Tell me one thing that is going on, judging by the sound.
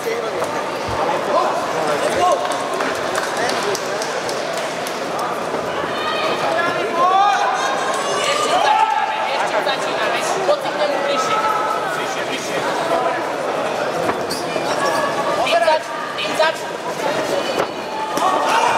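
A crowd murmurs and cheers in a large hall.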